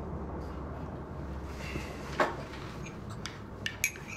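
Crockery clinks and taps on a table.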